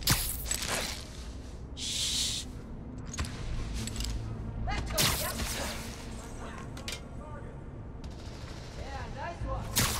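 Air whooshes as a figure swings and leaps between ledges.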